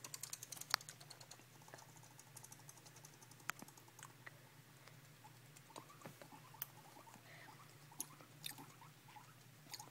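A guinea pig chatters its teeth in rapid clicks.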